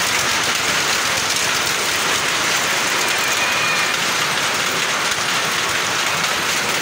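A fairground ride whirs and rattles as it spins.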